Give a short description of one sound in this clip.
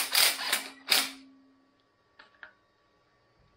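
A metal fitting clicks against an engine part.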